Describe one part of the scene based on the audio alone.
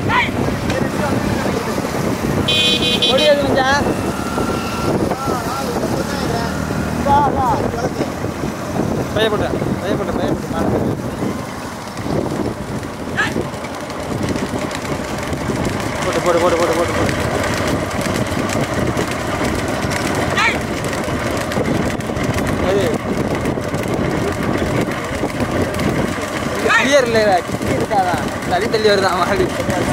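Cart wheels rumble on the road.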